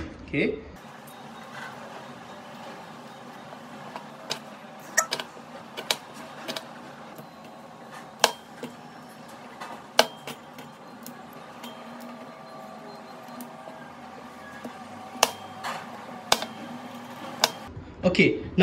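A knife chops through vegetables on a plastic cutting board with sharp taps.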